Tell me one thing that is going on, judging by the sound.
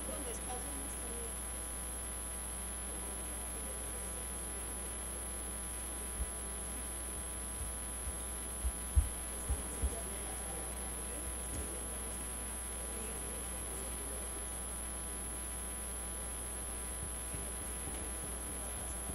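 Several men and women murmur quietly across a large echoing room.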